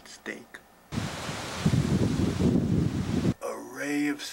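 Wind buffets a microphone outdoors.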